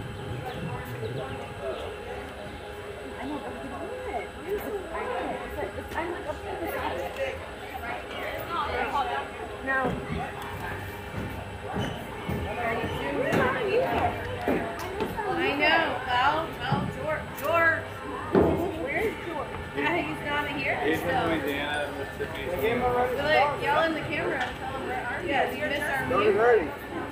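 Young women call out to each other from across an open field.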